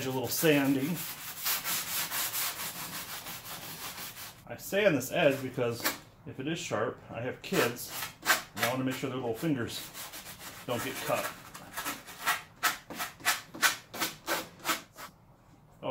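A block rubs back and forth on wood in quick strokes.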